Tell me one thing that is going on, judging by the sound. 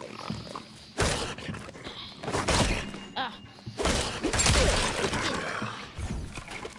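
Heavy blows thud and crash in a brief fight.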